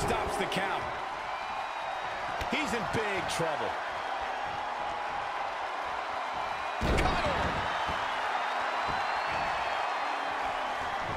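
A large crowd cheers steadily.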